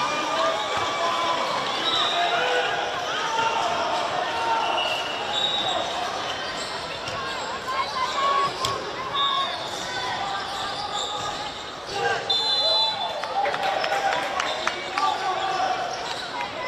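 Players shout and call to each other across an outdoor field.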